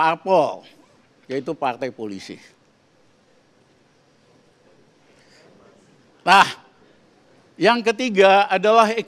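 An elderly man speaks into a microphone with pauses, in a calm, deliberate voice.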